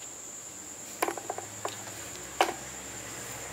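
A cable plug knocks and clicks into a socket.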